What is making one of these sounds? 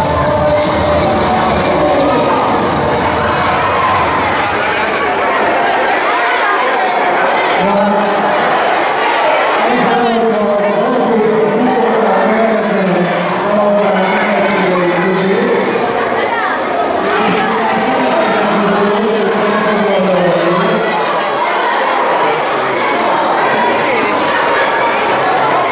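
A man sings through loudspeakers in a large echoing hall.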